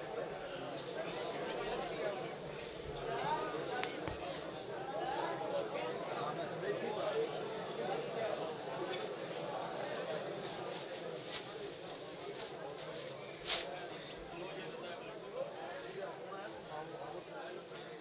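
A large crowd of men chant and murmur loudly in an echoing hall.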